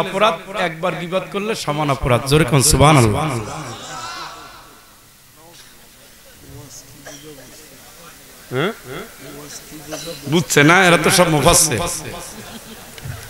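A middle-aged man preaches passionately into a microphone, heard through a loudspeaker with echo.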